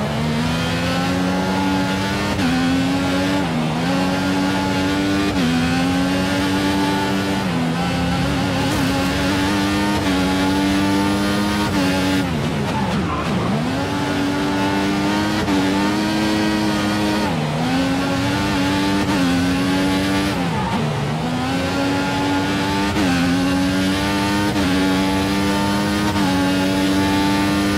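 A racing car engine roars loudly, revving up and dropping in pitch with each gear change.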